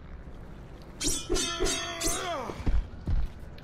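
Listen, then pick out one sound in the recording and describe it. A blade slices with a sharp metallic swish.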